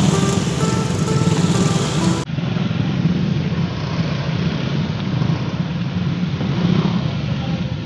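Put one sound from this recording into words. A motorcycle rides past close by.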